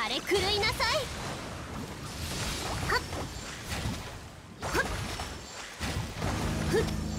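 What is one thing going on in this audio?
Magic attacks crackle and burst in a fast game battle.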